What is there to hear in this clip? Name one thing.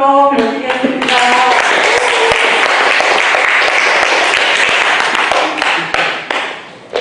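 An elderly woman claps her hands.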